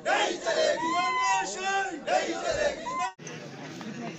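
A crowd of men shouts slogans loudly outdoors.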